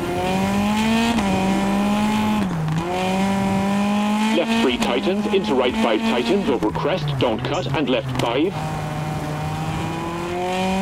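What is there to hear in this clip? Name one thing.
A rally car engine roars at high revs, shifting gears.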